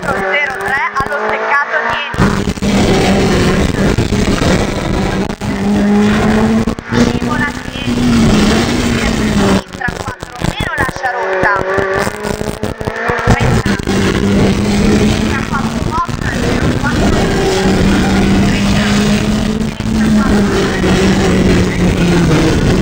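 A car engine roars loudly at high revs, rising and falling as gears change.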